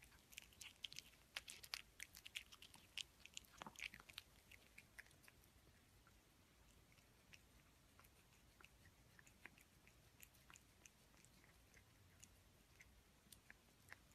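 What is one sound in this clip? A cat chews and smacks its lips wetly, close by.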